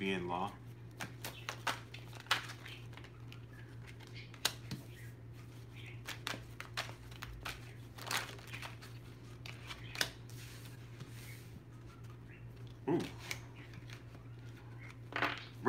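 Cards shuffle and tap on a table.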